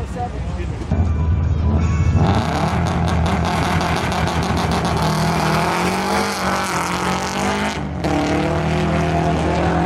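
A car engine rumbles and revs while idling.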